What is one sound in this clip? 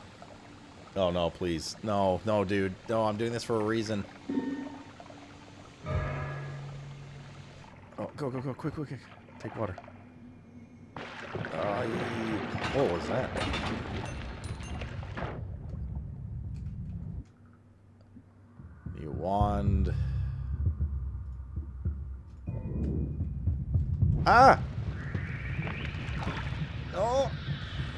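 A man talks with animation into a microphone, close by.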